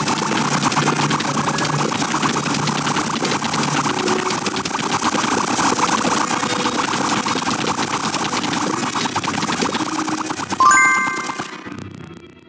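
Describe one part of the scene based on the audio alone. Rapid game shooting sounds pop and splat without pause.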